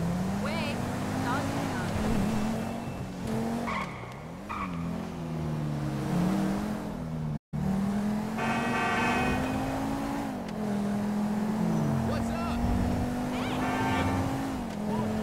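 A car engine hums and revs, rising and falling in pitch as the car speeds along.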